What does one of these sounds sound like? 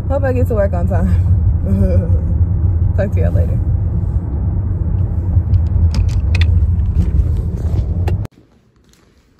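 A car engine hums low with road rumble from inside the car.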